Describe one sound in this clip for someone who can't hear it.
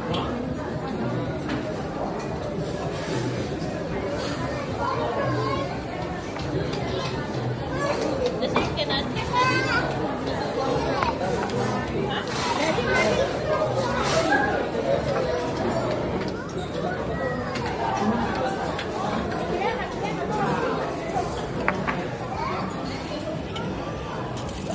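A crowd of people chatters in a busy, echoing room.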